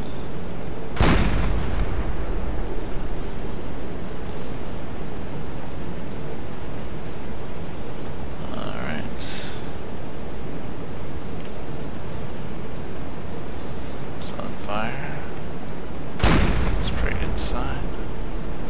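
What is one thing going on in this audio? A rifle fires with a loud boom that rumbles away.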